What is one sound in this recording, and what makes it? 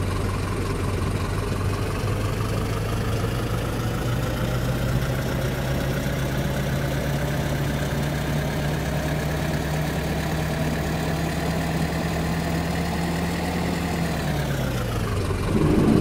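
A bus engine revs up and then winds down.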